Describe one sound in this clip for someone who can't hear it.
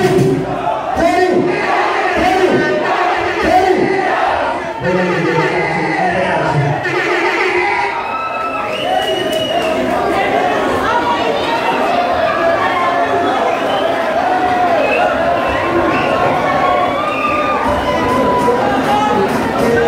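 Loud dance music with a singing voice plays over loudspeakers.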